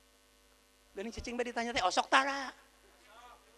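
A middle-aged man speaks with animation into a microphone, heard through loudspeakers.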